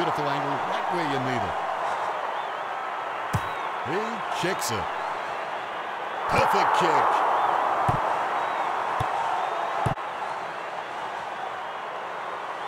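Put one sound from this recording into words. A large stadium crowd roars and cheers, swelling loudly partway through.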